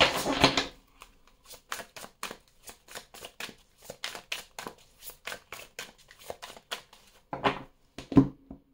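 Cards are tapped and shuffled hand over hand with soft, rapid clicks.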